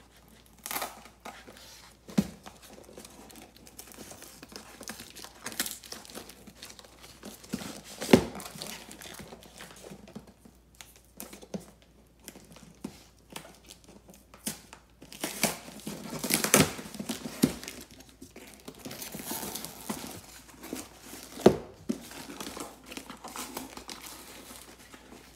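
Clear plastic film crinkles and rustles as hands unwrap a box.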